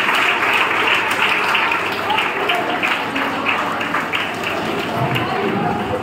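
Children clap their hands rhythmically.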